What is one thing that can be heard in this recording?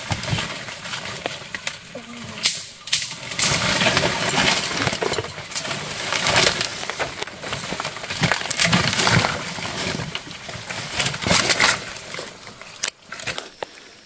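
Leaves rustle and branches swish as a person pushes through dense brush.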